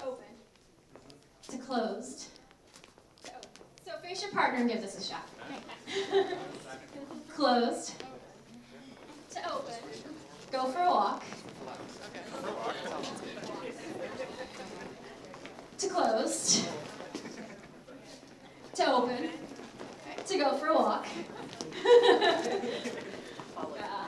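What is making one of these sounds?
A crowd of men and women chatter and laugh nearby.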